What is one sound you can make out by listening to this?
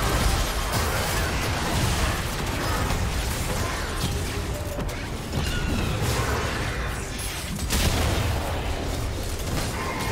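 Spell effects whoosh and crackle in a video game battle.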